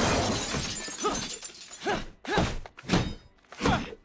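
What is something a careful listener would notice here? Glass breaks as a car window is smashed in.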